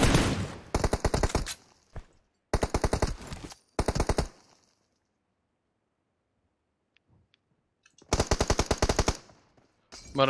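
A rifle fires in rapid bursts of shots.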